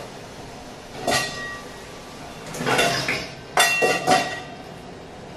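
A metal pot lid clanks and rings as it is lifted.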